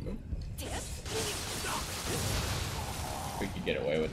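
Blades clash and scrape in a short fight.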